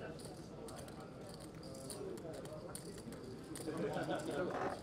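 Poker chips click and clatter on a table.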